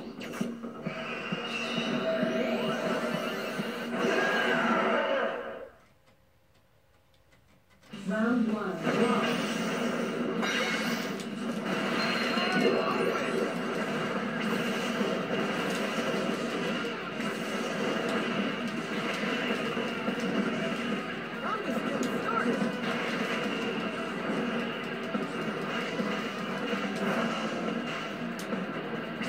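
Upbeat game music plays through a television speaker.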